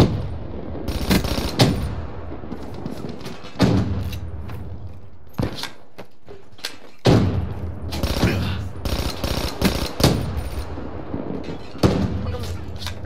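Gunshots from an automatic rifle crack in a video game.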